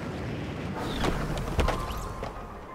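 A glider snaps open with a sharp pop.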